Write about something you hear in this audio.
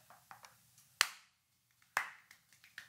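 A man claps his hands sharply.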